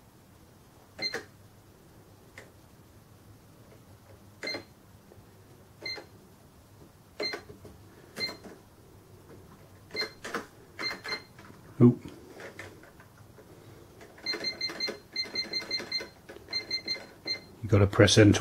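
A cash register beeps briefly with each key press.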